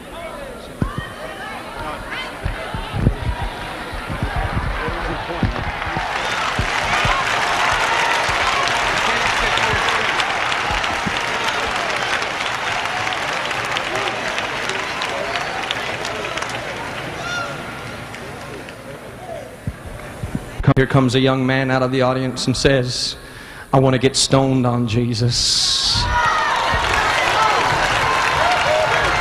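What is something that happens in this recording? A large crowd murmurs and cheers in an echoing hall.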